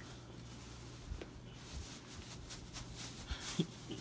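A pillow rustles as it is shaken into its case.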